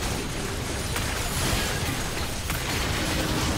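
Game weapons clash with sharp hits.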